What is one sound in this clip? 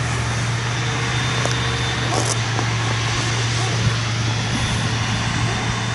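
Chopped crop hisses as it is blown into a trailer.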